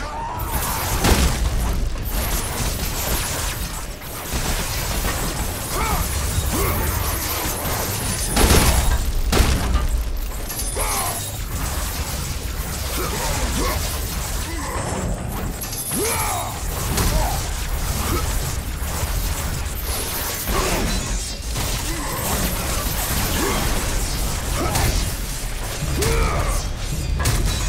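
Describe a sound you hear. Heavy blows land with sharp thuds and clangs.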